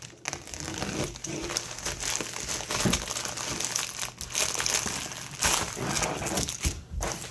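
Scissors snip through a padded plastic mailer.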